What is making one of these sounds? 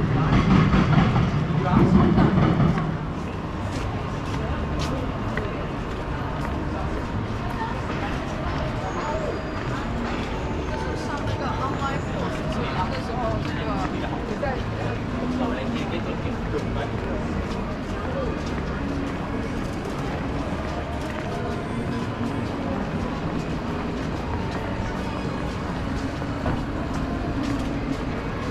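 A busy outdoor street murmurs with distant voices and traffic.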